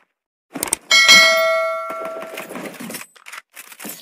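A short victory fanfare plays.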